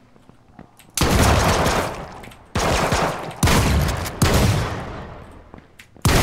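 Gunshots blast loudly at close range.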